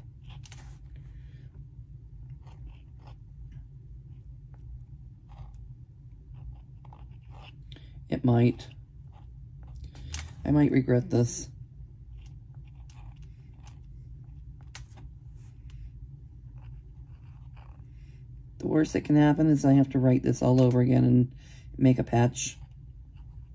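A hand rubs softly over paper.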